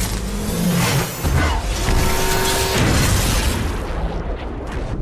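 A vehicle engine roars loudly.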